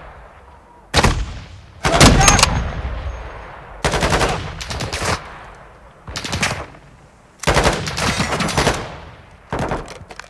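A rifle fires loud, echoing shots, one after another.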